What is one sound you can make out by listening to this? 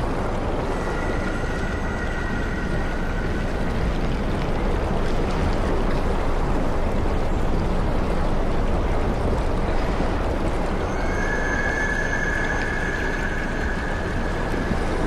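Water rumbles and hisses steadily, heard from underwater.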